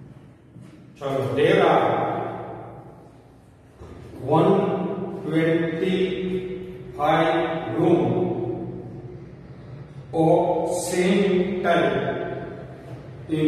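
A middle-aged man reads aloud and explains in a clear, raised voice in an echoing room.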